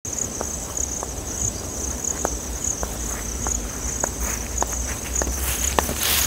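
Footsteps crunch slowly through dry grass.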